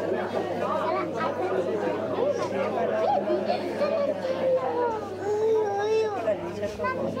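Young children talk and call out nearby in a large echoing hall.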